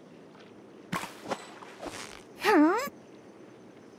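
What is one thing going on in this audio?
Water splashes briefly as a fish bites.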